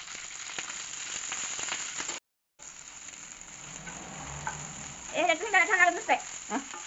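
Vegetables sizzle in hot oil in a pan.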